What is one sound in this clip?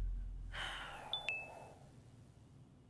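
A computer pings once.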